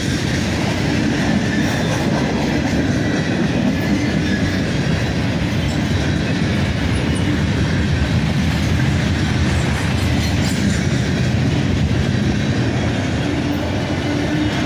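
A freight train rumbles past close by, its wheels clattering loudly on the rails.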